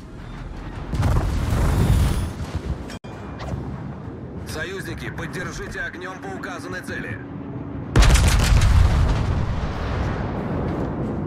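Heavy ship guns fire with deep booms that roll away.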